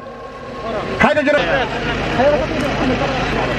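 Several men talk nearby outdoors.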